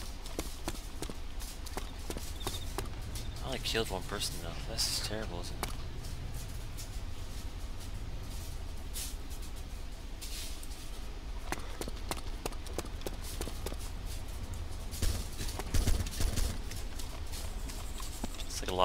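Footsteps run quickly over hard ground and gravel.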